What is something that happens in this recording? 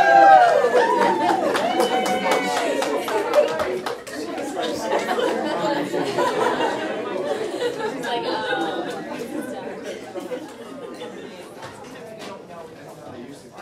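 Women laugh and chat excitedly nearby.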